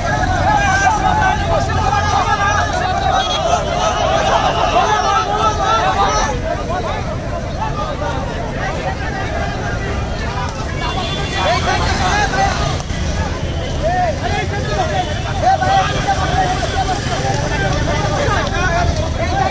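A large crowd of young men and women shouts and chants together outdoors.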